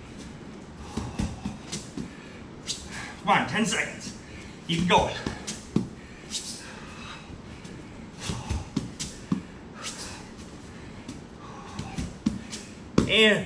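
Hands slap softly against a mat.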